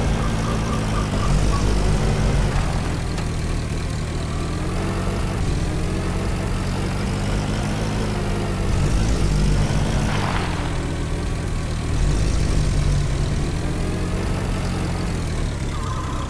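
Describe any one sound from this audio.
A jeep engine rumbles steadily as it drives over rough ground.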